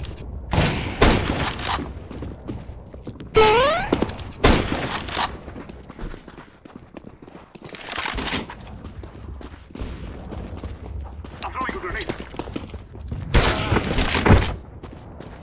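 A rifle fires loud, sharp shots that echo briefly.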